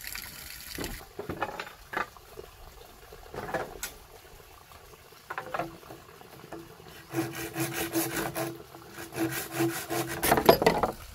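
Water pours steadily from a pipe.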